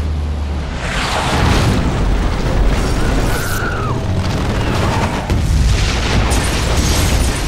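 A plane crashes and explodes with a loud roaring blast.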